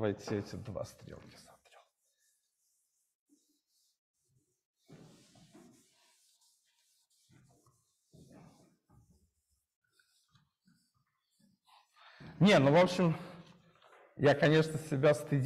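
A man speaks calmly in a roomy, slightly echoing space, with long pauses.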